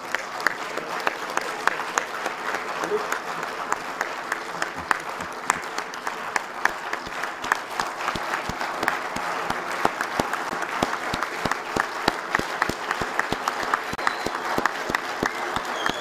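A crowd claps steadily.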